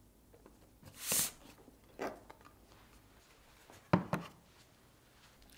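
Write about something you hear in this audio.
A plastic lid snaps onto a container.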